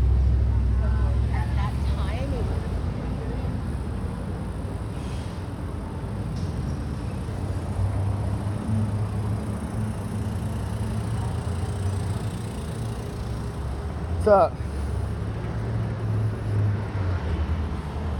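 Bicycle tyres roll over pavement.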